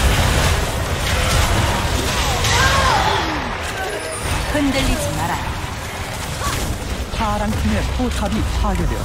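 Spell effects whoosh and crackle in a busy video game fight.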